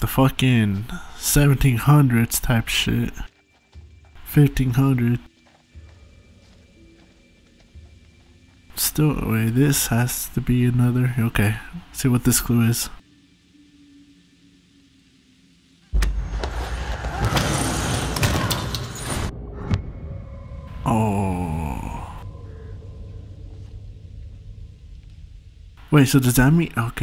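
A young man speaks quietly and tensely, close by.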